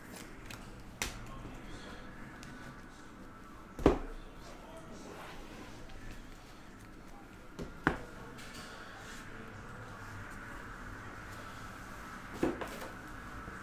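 Objects knock sharply on a table now and then.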